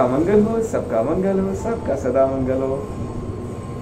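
A man speaks warmly and close to a microphone.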